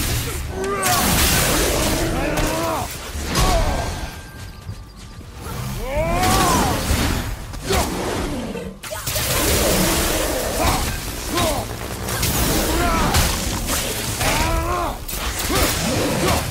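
Creatures snarl and screech.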